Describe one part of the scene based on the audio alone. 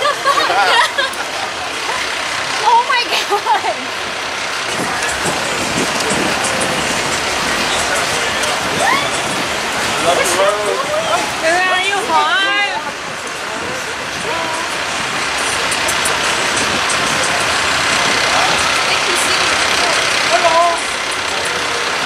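Adult women and men chat nearby outdoors.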